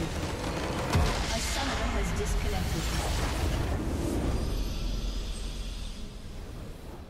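A huge magical explosion booms and rumbles, then fades.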